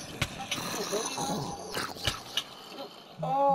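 A zombie groans and attacks at close range.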